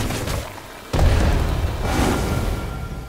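A fiery blast bursts with a loud roar.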